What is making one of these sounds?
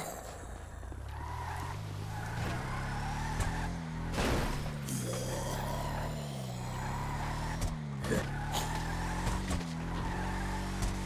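A heavy truck engine rumbles and revs up and down.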